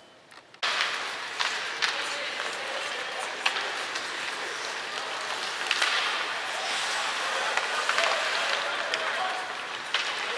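Hockey sticks click against a puck.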